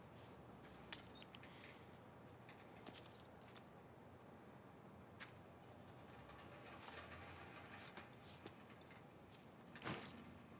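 A small metal tag clinks as it is picked up and turned.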